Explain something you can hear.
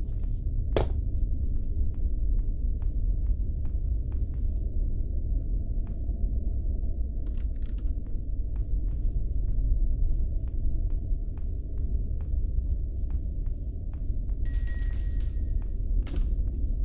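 Footsteps tread on wooden floorboards.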